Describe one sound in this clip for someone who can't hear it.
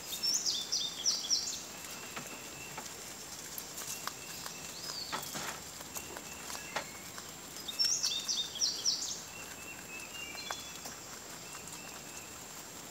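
Rabbits munch on fresh green leaves up close.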